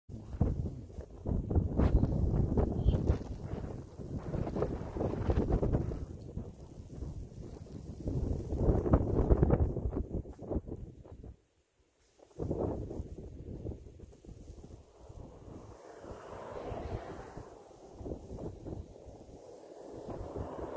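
Wind gusts roughly against the microphone outdoors.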